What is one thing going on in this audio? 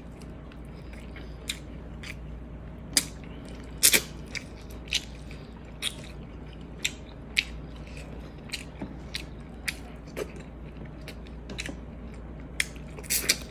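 A young woman chews and smacks her lips loudly, close to a microphone.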